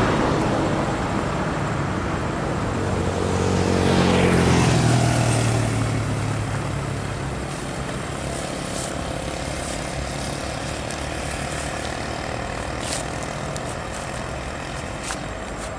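A large truck engine rumbles loudly as it approaches and passes close by.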